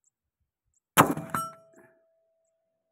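A rifle fires a single loud shot that rings out in the open air.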